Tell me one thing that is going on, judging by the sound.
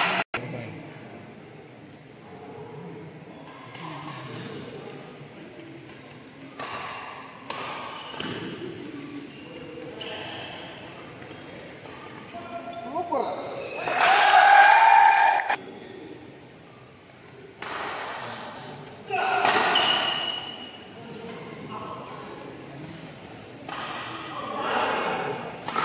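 Shuttlecocks are struck with sharp pops of badminton rackets.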